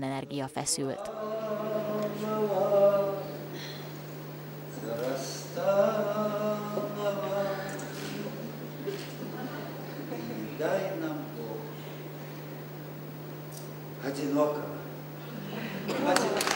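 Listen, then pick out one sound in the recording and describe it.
An elderly man speaks emotionally and close by.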